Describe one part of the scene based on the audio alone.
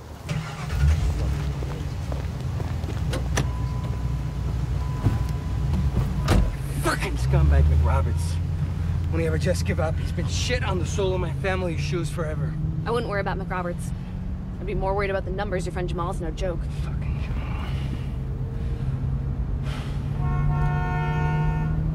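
A car engine hums steadily as the car pulls away and drives along.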